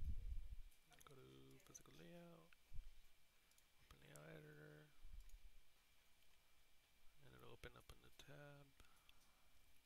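A young man speaks calmly into a headset microphone.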